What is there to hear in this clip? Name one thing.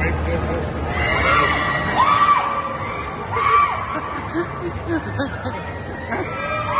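Riders scream on a spinning amusement ride.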